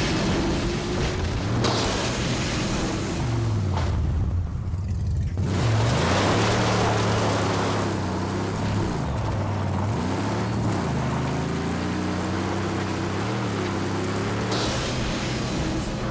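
Tyres crunch over rough rocky ground.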